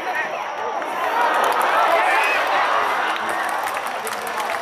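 A stadium crowd roars and cheers loudly, then settles.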